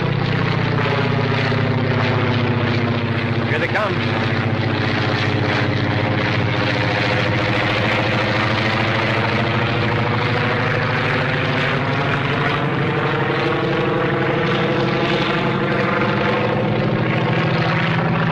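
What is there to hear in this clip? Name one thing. Propeller engines of biplanes drone loudly and steadily.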